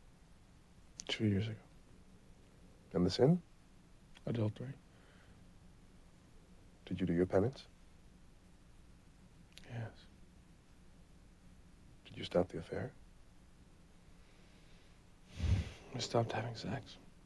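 A man speaks quietly, close by, in short phrases with long pauses.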